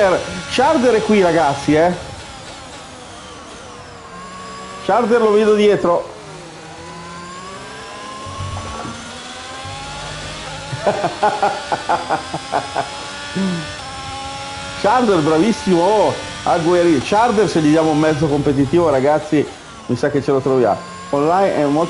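A racing car engine whines and revs up and down.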